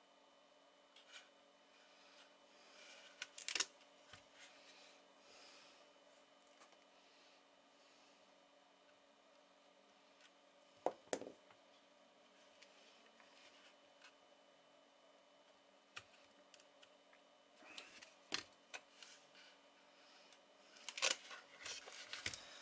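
Hands handle small electronic parts with light clicks and taps.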